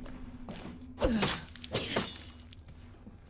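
A knife slashes and thuds into a body.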